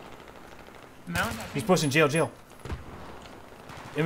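A rifle fires a few short shots.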